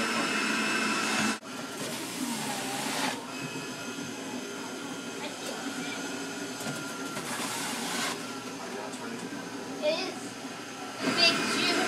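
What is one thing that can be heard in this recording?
A juicer motor whirs steadily.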